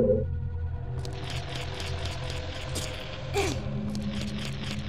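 A game character's footsteps patter on stone.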